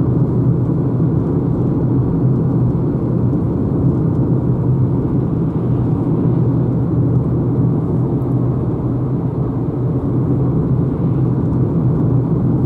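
Wind rushes past a moving car.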